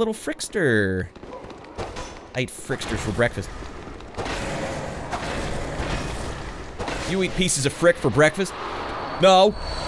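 Swords clash and slash.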